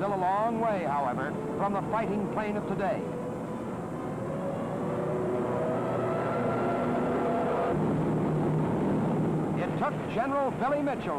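A propeller airplane engine drones loudly.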